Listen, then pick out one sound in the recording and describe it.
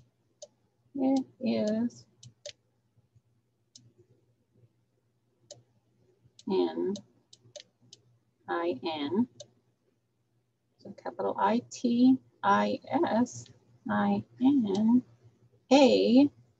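A woman speaks slowly and clearly over an online call, reading words aloud.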